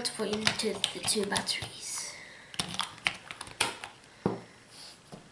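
Batteries click and snap into a plastic holder.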